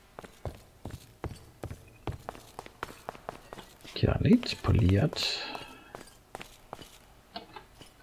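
Footsteps tap in a quick, steady rhythm on hard floors.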